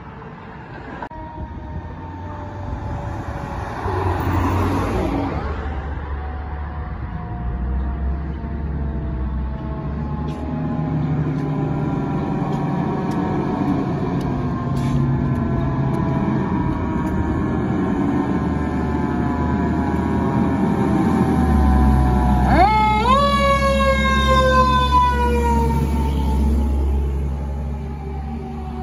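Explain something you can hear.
A fire truck siren wails, slowly winding down, then surges up loudly as the truck draws near.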